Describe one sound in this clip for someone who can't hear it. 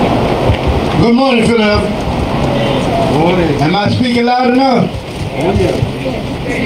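A second man sings through a microphone.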